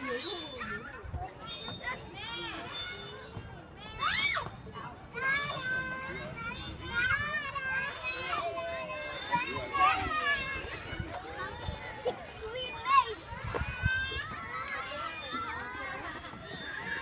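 Young children chatter and squeal close by.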